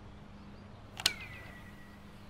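A switch clicks loudly on an amplifier.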